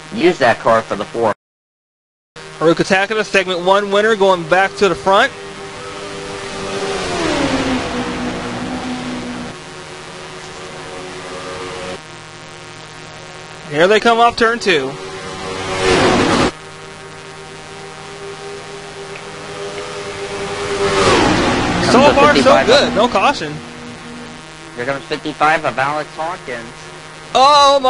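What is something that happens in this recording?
Many race car engines roar and whine together, rising and falling in pitch as they pass.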